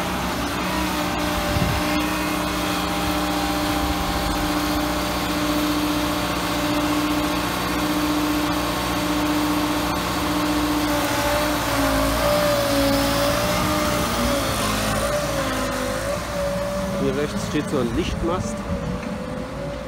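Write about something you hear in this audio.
A diesel engine runs with a steady hum nearby.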